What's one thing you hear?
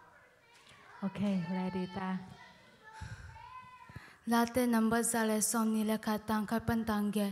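A young woman sings through a microphone, growing louder.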